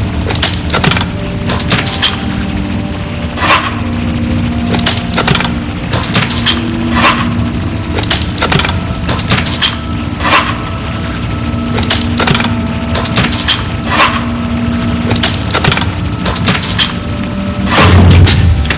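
Small metal levers click and clank as they slide into place.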